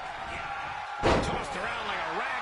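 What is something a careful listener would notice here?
A heavy thud of a body hitting a wrestling ring mat.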